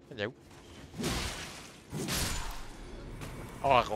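Heavy blows and whooshing strikes crash in bursts.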